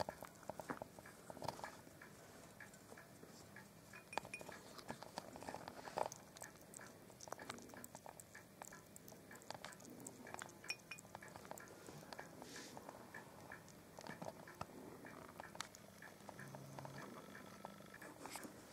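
A hedgehog's claws scratch and tap on a ceramic plate.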